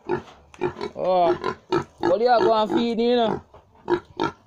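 A pig squeals loudly.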